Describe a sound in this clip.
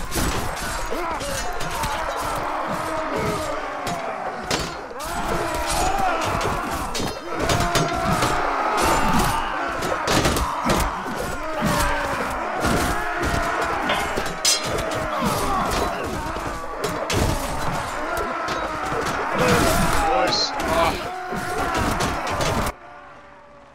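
Swords and shields clash in a noisy battle.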